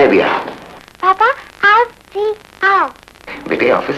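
A young child speaks in a high voice through a phone.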